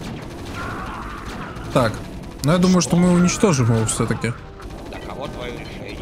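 Small explosions burst as units are destroyed.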